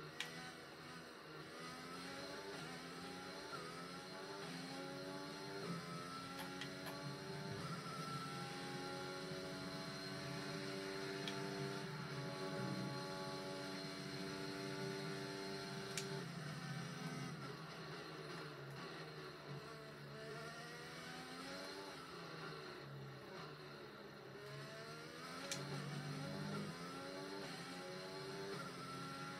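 A racing car engine whines, rising in pitch as it speeds up and dropping as it slows for corners.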